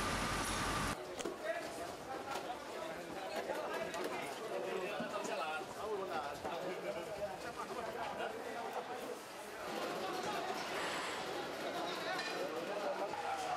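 A crowd of men talks and shouts at once close by.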